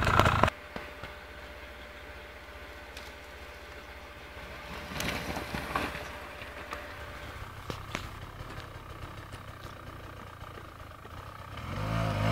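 A dirt bike engine buzzes in the distance.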